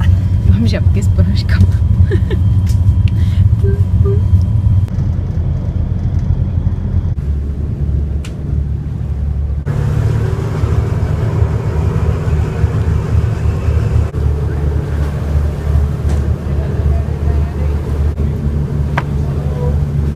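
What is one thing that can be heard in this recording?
A boat engine rumbles steadily close by.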